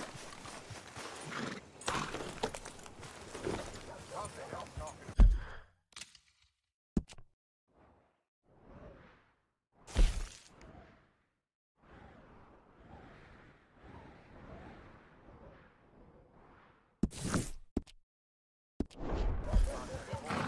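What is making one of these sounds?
A horse's hooves thud on a dirt road.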